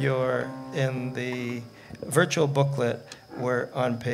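A hand drum is tapped.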